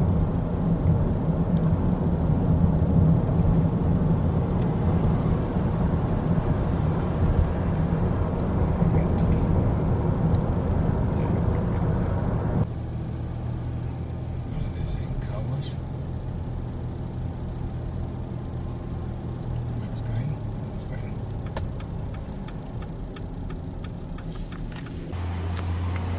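Road noise rumbles steadily inside a moving car, growing quieter as the car slows.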